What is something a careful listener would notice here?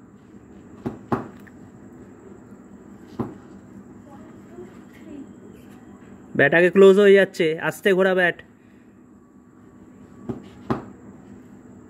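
A cricket bat taps on concrete.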